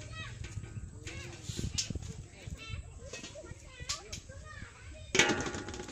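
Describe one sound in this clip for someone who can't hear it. A wire fish trap rattles as it is handled.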